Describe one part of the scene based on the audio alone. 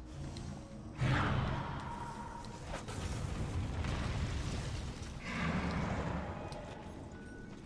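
A whooshing magical burst sounds as a game character dashes.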